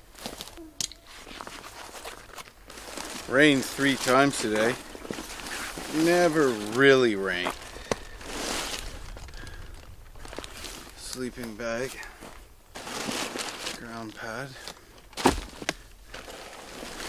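Nylon fabric of a backpack rustles and crinkles.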